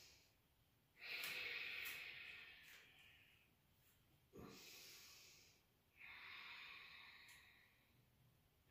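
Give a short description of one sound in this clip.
A woman exhales deeply.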